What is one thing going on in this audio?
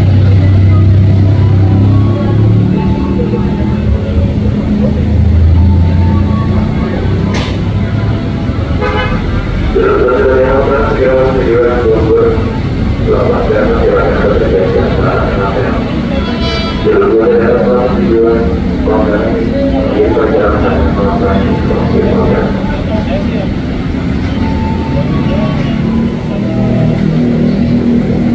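An electric commuter train approaches along the track.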